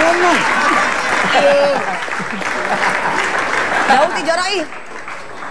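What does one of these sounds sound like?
A crowd laughs.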